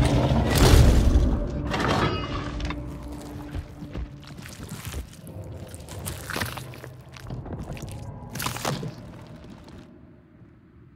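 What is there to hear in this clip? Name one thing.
A creature is struck with heavy, wet, squelching blows.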